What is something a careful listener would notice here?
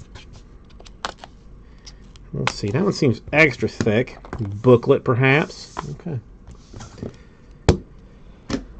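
A box cutter slices through tape on a cardboard box.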